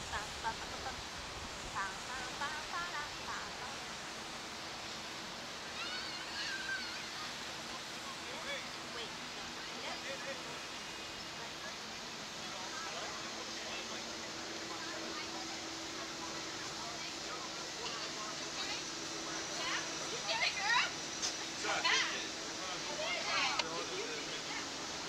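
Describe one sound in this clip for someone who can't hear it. A teenage girl talks close by.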